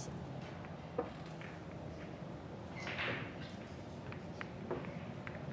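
Billiard balls click sharply together on a table.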